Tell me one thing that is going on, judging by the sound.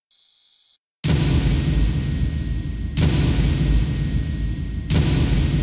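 Rapid ticking tones play over a loud musical tally.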